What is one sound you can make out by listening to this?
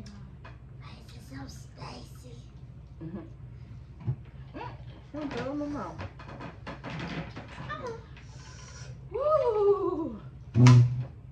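A young girl talks with animation close by.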